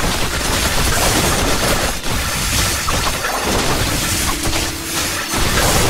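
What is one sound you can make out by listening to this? Rapid magical zaps and crackling hits burst constantly, loud and dense.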